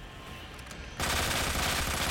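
A pistol fires loudly.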